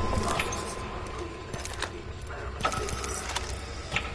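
Short game clicks and chimes sound as items are picked up.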